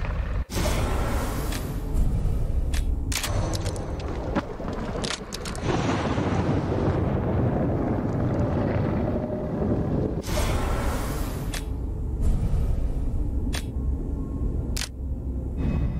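Short menu clicks sound several times.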